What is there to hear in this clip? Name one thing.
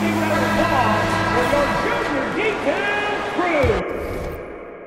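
A large crowd cheers loudly in an echoing arena.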